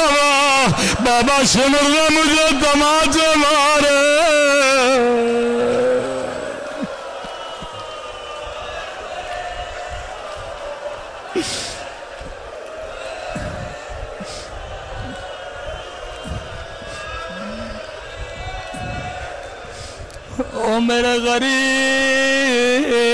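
A man chants in a strong, melodic voice through a microphone, in an echoing hall.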